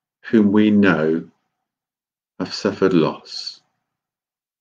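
A middle-aged man speaks calmly and close by, through a microphone on an online call.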